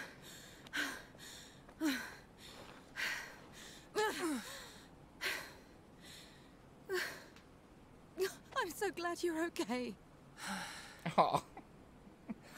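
A young woman speaks with emotion, close by.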